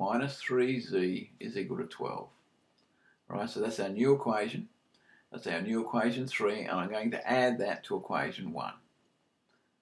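An older man explains calmly, close to a microphone.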